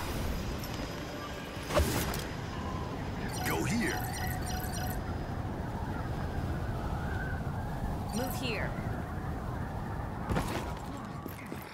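Wind rushes loudly past a gliding figure.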